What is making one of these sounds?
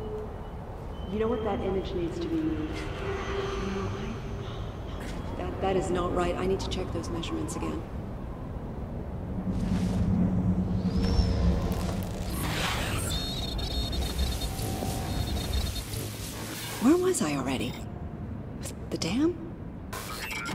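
A young woman speaks thoughtfully to herself, heard close.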